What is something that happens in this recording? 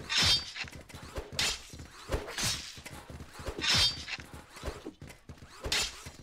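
Energy swords clash sharply.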